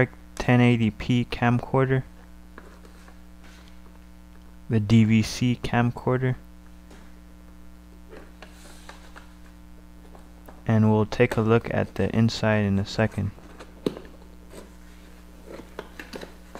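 A cardboard box scrapes and rustles as hands handle it.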